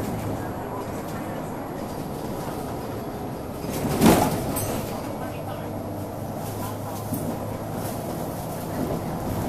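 A bus rattles and thumps over the road.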